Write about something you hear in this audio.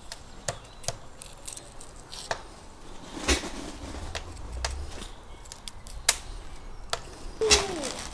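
A knife scrapes and clicks while peeling garlic cloves.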